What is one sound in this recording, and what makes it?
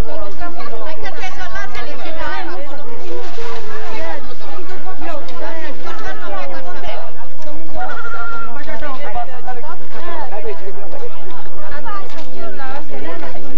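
A crowd of men and women talk and call out loudly outdoors.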